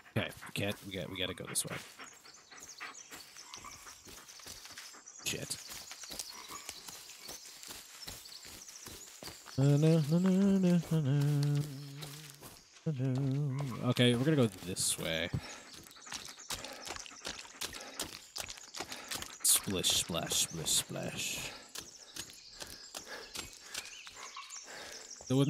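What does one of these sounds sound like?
Footsteps crunch and rustle through dry undergrowth and leaves.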